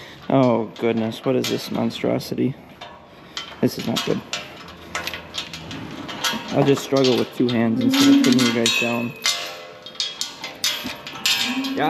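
A metal chain rattles and clinks against a gate.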